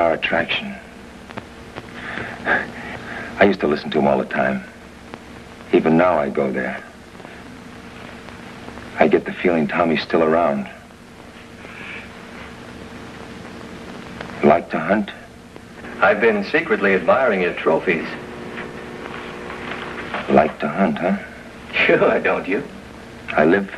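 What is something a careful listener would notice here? A man speaks in a low, tense voice nearby.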